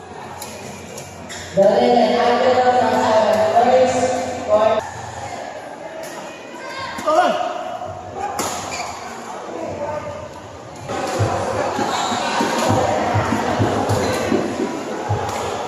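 Rackets strike a shuttlecock in a large echoing hall.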